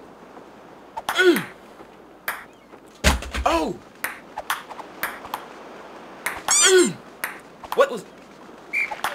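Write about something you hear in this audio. A young man exclaims loudly and excitedly close to a microphone.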